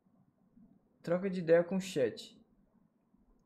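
A young man speaks briefly and with animation into a close microphone.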